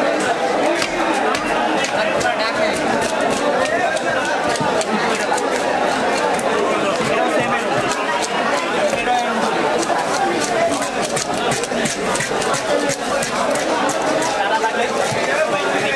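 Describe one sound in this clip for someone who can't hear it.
Meat is sliced and scraped against a blade with short wet clicks.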